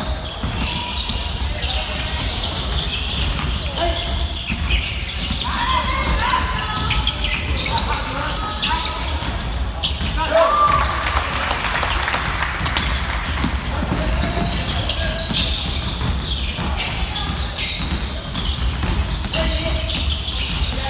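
A basketball bounces on the wooden floor with hollow thuds.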